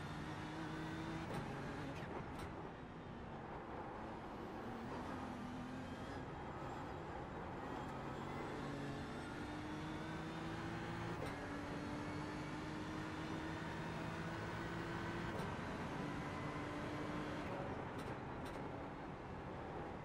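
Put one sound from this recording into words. A racing car engine revs up steadily through the gears, dropping in pitch at each gear change.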